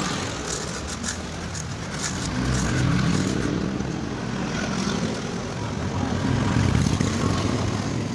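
A motorbike engine hums as it passes by on the street.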